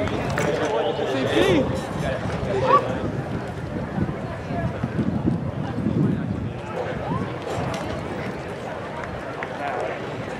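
A crowd chatters outdoors in the distance.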